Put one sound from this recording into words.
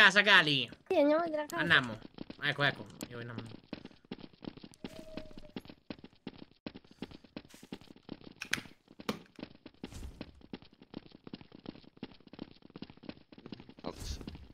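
Footsteps tap quickly on cobblestones.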